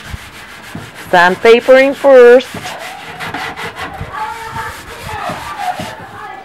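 A hand rubs steadily across a wooden surface.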